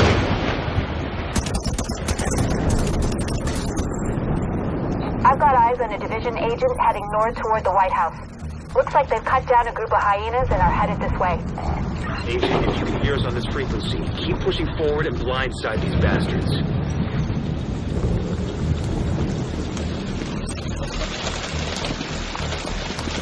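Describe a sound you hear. A heavy storm roars with wind and driving rain.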